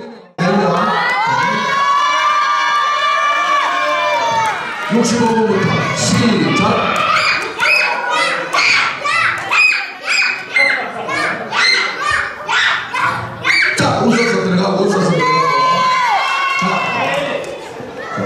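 Young girls laugh and squeal.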